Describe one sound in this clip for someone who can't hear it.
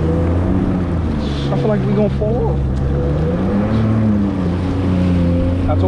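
A jet ski engine drones steadily at speed.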